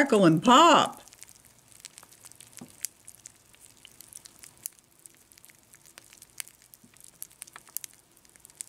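Puffed rice cereal softly crackles and pops in milk.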